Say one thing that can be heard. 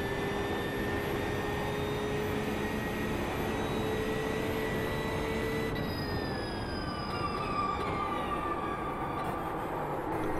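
A racing car engine whines at high revs, then drops in pitch as the car slows down.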